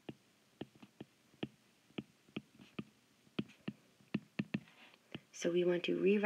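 A stylus taps and clicks sharply on a tablet while writing.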